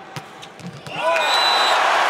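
A large crowd roars loudly in an echoing arena.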